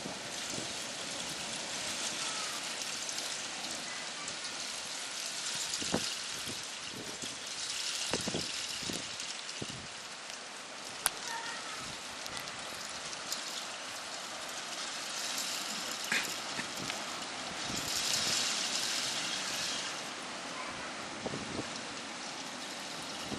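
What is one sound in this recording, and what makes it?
Sleet hisses steadily outdoors.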